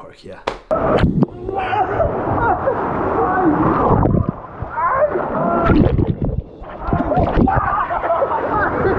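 Water rushes and splashes down a slide.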